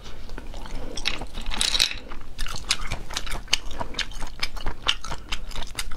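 Snail shells clink and rattle as fingers pick through them.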